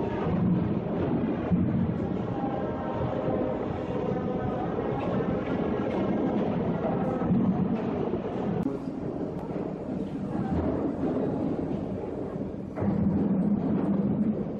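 A wooden barrel rumbles as it rolls across a concrete floor.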